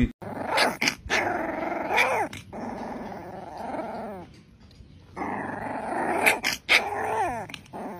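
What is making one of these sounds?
A puppy whines and yelps up close.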